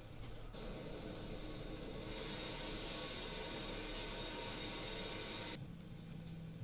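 Jet engines whine and roar loudly from an airliner taxiing.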